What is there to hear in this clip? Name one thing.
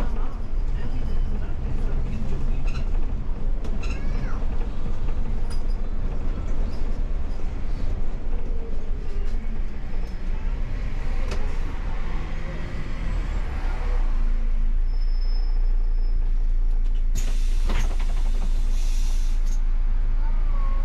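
Loose parts rattle and knock inside the bus.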